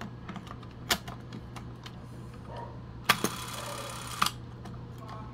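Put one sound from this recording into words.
Plastic parts click and tap as fingers handle a film cartridge.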